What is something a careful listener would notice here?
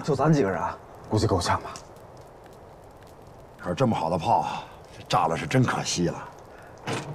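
A man speaks calmly and cheerfully, close by.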